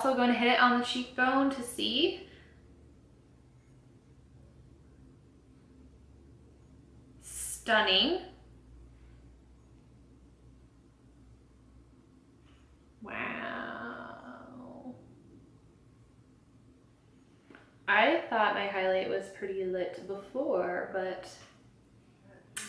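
A young woman talks calmly and close to a microphone, in short bursts.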